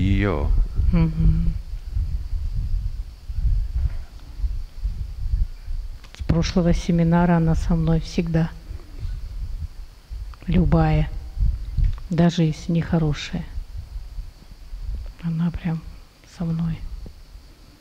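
An elderly man speaks calmly through a microphone, with pauses.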